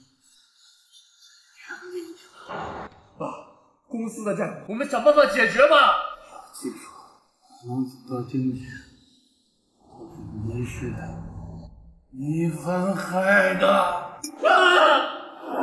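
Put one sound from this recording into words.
A young man sobs and cries out in distress.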